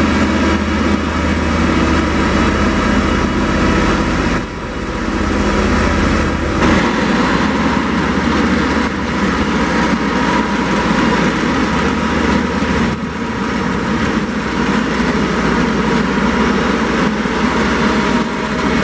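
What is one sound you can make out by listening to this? Many tyres of a heavy transporter roll slowly over gravel.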